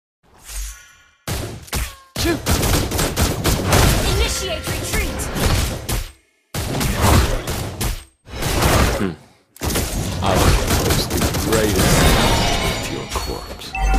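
A fiery monster roars and strikes during a fight.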